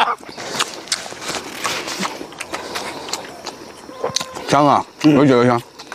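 An elderly man chews and smacks his lips.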